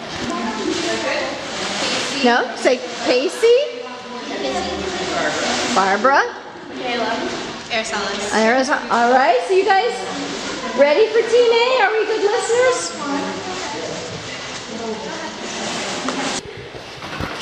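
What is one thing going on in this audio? Young girls speak in turn with animation, close by.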